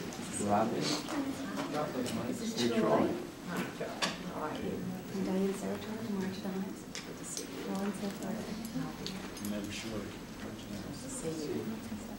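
A group of men and women chat and greet each other calmly nearby.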